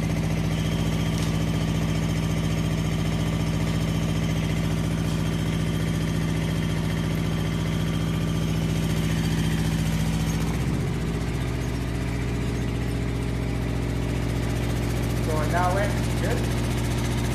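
An engine hums steadily, its pitch dropping partway through.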